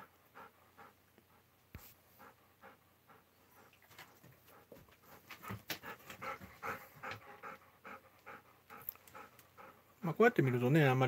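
A dog pants quickly and steadily close by.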